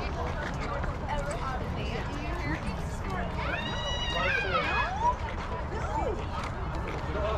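Young women shout and cheer from across an open field outdoors.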